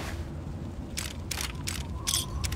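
Short electronic beeps and clicks sound in quick succession.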